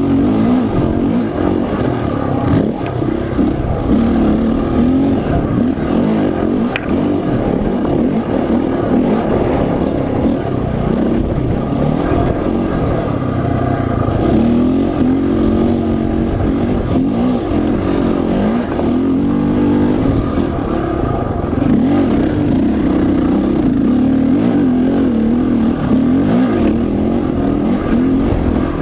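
A dirt bike engine revs loudly up close, rising and falling.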